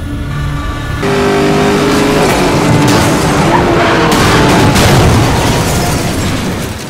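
A car engine roars loudly at high speed.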